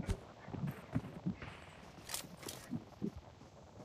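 Footsteps thud softly on a hard surface.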